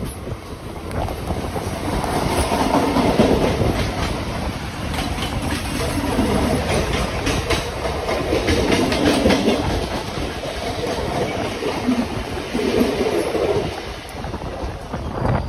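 A passing commuter train roars by close at hand.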